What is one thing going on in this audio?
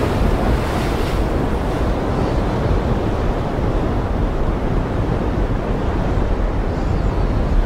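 Strong wind gusts outdoors.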